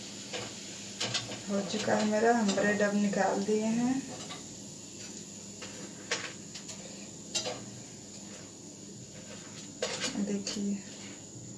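A metal spatula clinks against a pan and a plate.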